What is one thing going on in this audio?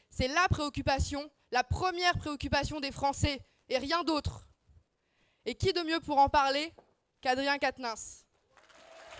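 A young woman speaks with animation through a microphone in a large echoing hall.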